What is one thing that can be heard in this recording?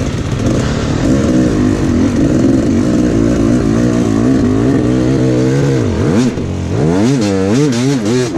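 A dirt bike engine revs up and down close by.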